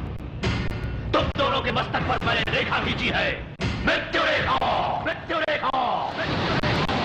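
A man speaks loudly and forcefully, with echo.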